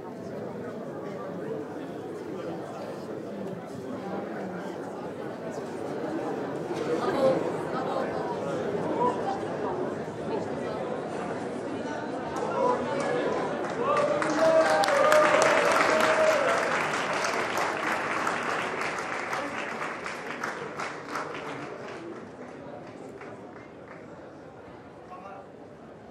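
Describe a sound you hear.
A crowd of people chatters and murmurs nearby.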